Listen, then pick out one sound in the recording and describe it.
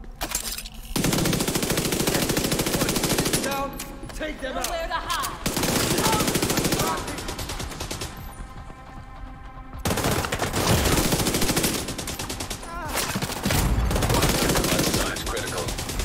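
Rapid gunfire rattles loudly, echoing in a large hall.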